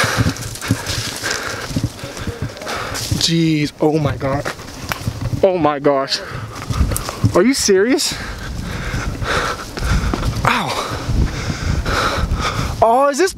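A young man breathes heavily and pants.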